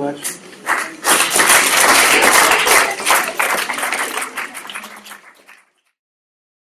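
A group of people applauds, the clapping fading out.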